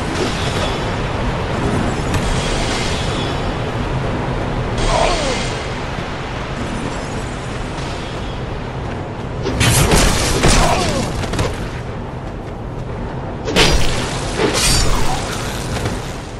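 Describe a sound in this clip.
Swords clash and slash in quick blows.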